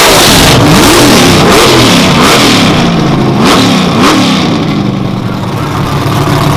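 A race car engine roars at full throttle, rising in pitch through quick gear changes and fading away.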